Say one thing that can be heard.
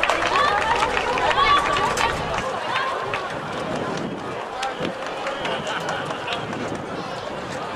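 A field hockey stick strikes a ball.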